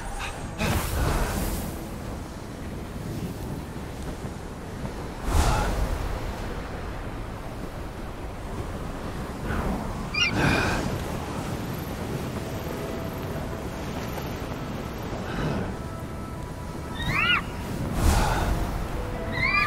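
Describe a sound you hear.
Crackling energy whooshes in sudden bursts.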